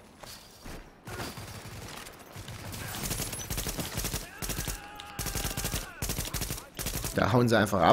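Gunfire rattles in quick bursts.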